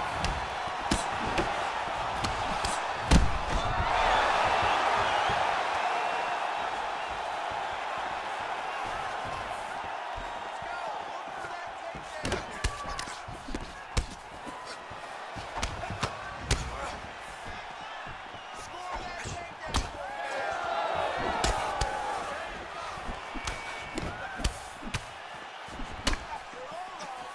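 A crowd cheers and roars in an arena.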